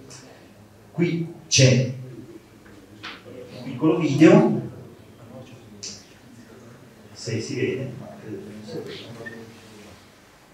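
A man speaks into a microphone in short phrases with pauses.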